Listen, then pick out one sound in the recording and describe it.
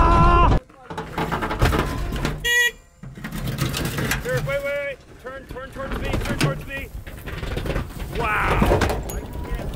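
Tyres crunch and grind over rock and gravel.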